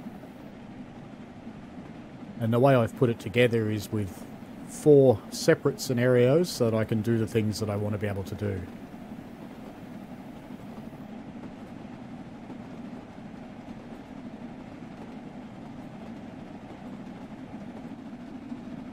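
A steam locomotive rumbles steadily along the track.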